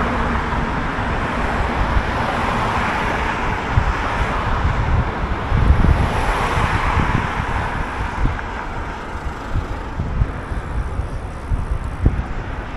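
Cars drive along the road nearby.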